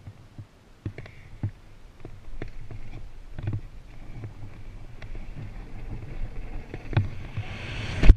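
Bicycle tyres rattle and thump over wooden boards.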